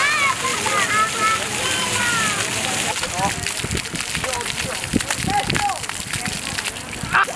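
Fountain jets splash onto paving.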